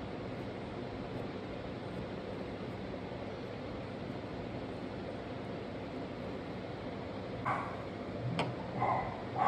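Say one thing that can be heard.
A pen tip scratches softly on paper.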